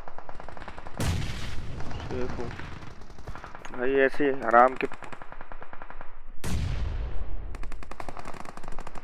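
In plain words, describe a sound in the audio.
Gunfire bursts out in short volleys.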